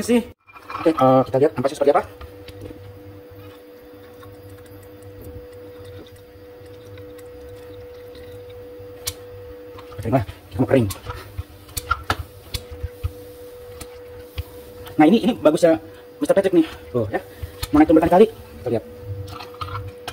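The arms of a manual lever espresso maker are pressed down.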